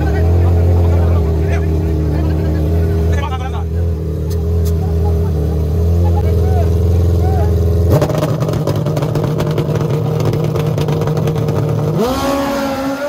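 A motorcycle engine idles with a deep, loud rumble.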